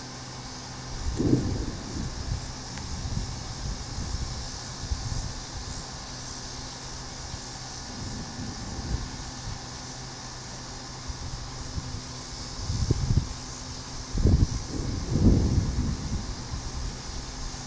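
Wind gusts outdoors, rumbling in uneven bursts.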